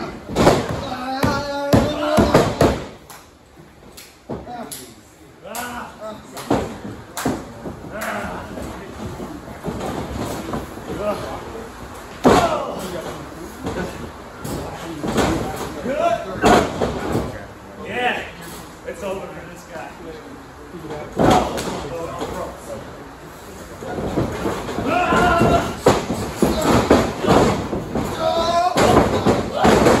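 Feet stomp and shuffle on a wrestling ring's canvas.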